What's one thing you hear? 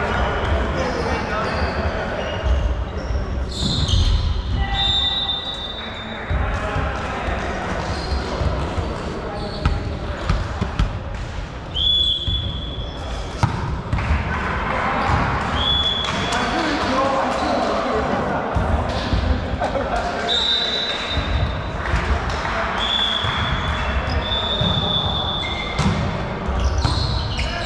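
A volleyball thuds off players' hands and the floor, echoing in a large hall.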